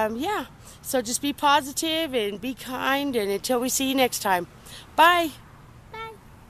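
A woman talks cheerfully and animatedly close to a microphone.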